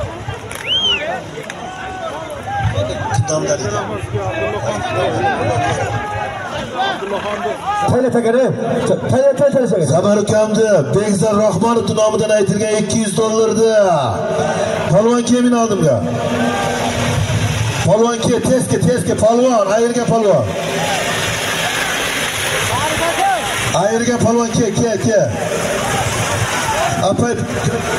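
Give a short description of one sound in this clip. A large crowd of men shouts and calls outdoors.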